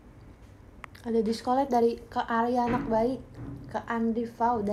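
A young woman speaks close to a microphone in a high, animated voice.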